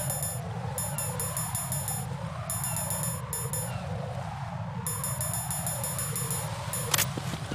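Short electronic beeps sound as menu items are selected.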